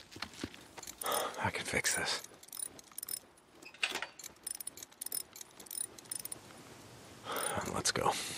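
Metal tools clank and rattle against a motorcycle.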